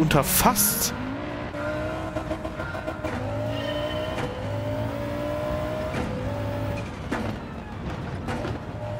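A racing car engine revs and rises in pitch as it speeds up.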